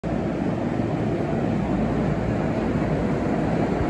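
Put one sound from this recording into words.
A train's doors slide shut.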